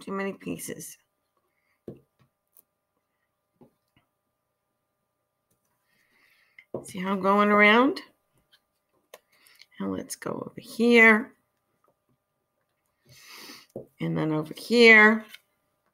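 An older woman talks calmly and clearly, close by, in short phrases.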